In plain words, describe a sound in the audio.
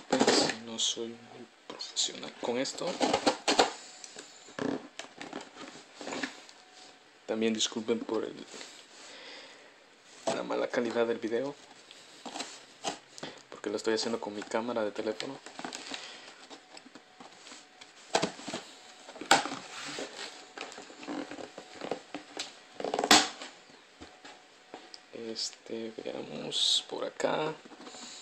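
Cardboard rustles and scrapes as a box is handled close by.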